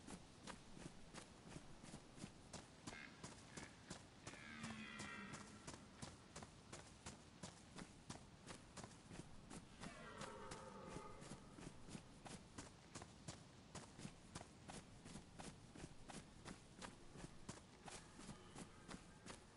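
Footsteps tread steadily over soft ground outdoors.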